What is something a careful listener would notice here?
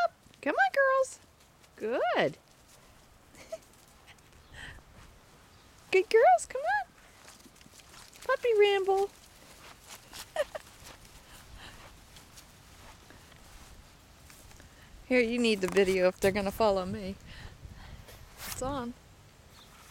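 Puppies whine and yelp close by.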